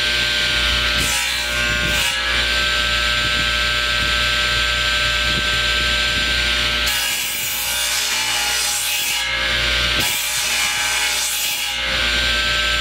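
A saw blade cuts through wood.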